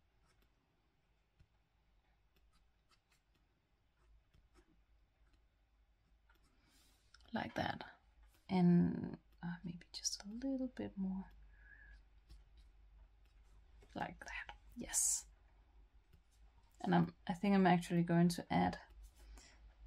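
A felt-tip pen scratches softly on paper.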